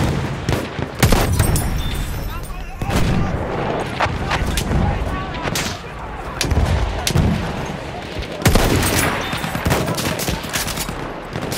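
Gunfire and explosions rumble in the distance.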